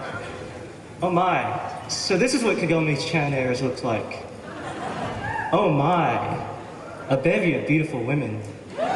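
A young man speaks with animation into a microphone, heard over loudspeakers.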